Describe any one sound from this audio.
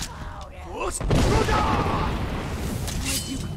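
Fire crackles and roars in a burst.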